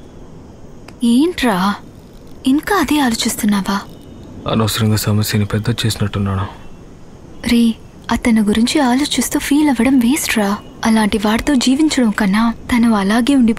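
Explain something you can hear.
A young woman speaks emotionally, close by.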